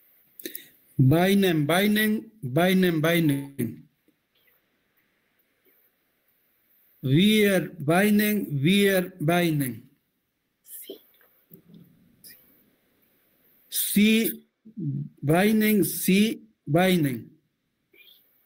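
A man chants loudly in short, repeated phrases over an online call.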